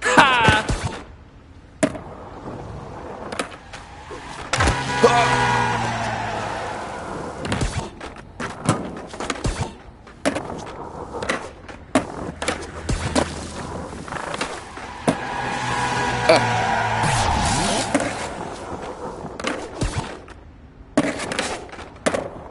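Skateboard wheels roll and grind over hard ground.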